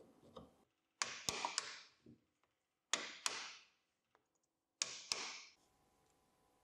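A wooden block rubs against a metal shaft.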